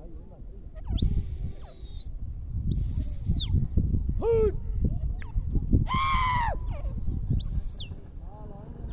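A partridge calls with loud, sharp, rising whistles.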